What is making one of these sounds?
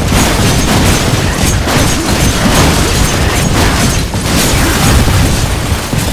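Shelves and debris crash and shatter as a body smashes through them.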